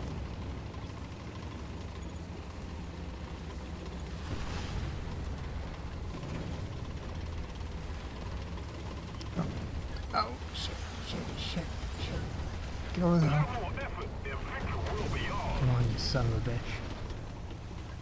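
Tank tracks clank and grind over sand.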